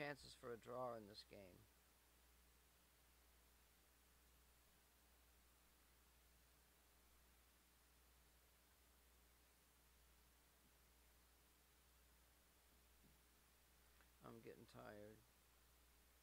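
A man speaks calmly and close into a microphone, in short bursts.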